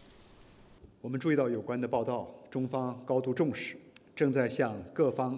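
A middle-aged man speaks calmly and formally into a microphone.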